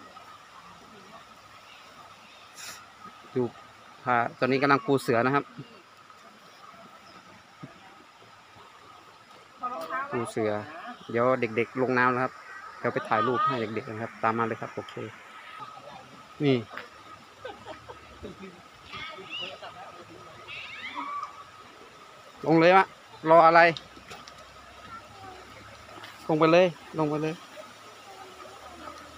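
A stream flows steadily over rocks.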